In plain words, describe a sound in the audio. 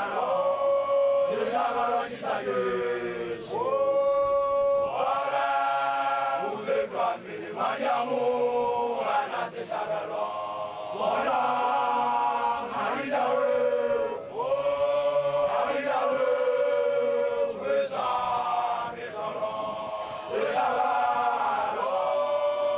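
A group of young women sing a loud, drawn-out chant close by, outdoors.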